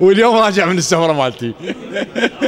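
A middle-aged man chants in a drawn-out, melodic voice through a microphone.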